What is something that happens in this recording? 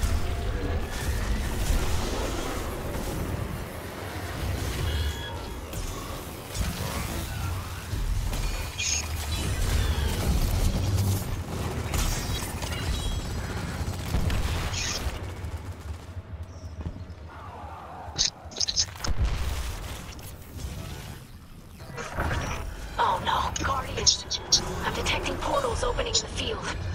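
Gunfire from a video game rifle rattles in quick bursts.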